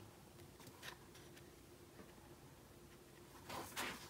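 Paper slides into a paper pocket.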